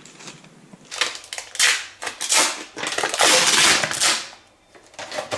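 Plastic packaging rustles and crinkles in a man's hands.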